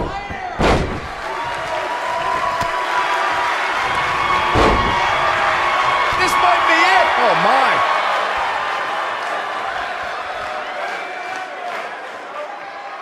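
A large crowd cheers and roars in a big hall.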